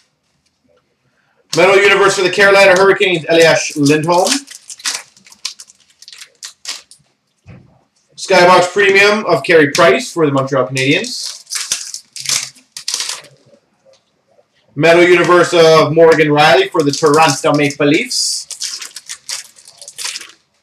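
Foil card packs crinkle and rustle as hands handle them.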